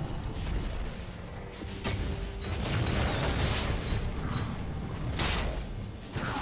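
Magic spell effects whoosh and crackle in a fast battle.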